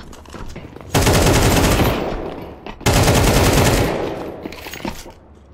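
A rifle fires loud rapid bursts.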